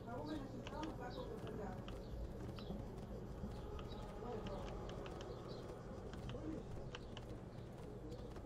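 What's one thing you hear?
Horse hooves gallop rapidly over grass.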